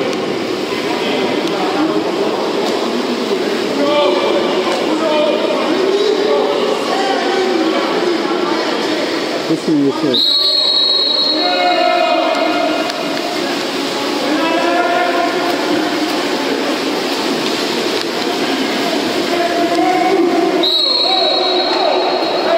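Swimmers splash and churn the water in a large echoing pool.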